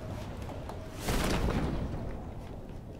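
A parachute snaps open with a loud whoosh of air.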